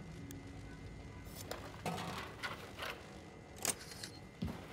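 A gun's parts click as it is handled.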